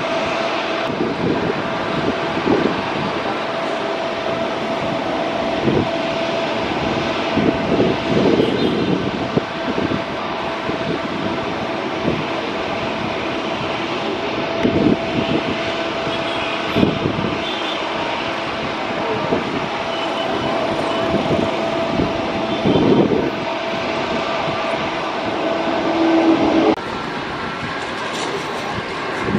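A jet airliner's engines hum and whine steadily as it taxis nearby.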